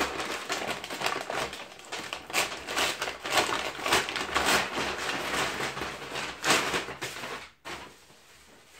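Tissue paper rustles and crinkles loudly, close by.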